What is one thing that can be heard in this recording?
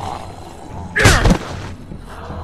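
A heavy blow lands with a loud, sudden crack.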